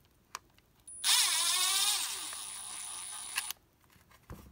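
A cordless screwdriver whirs as it drives a screw.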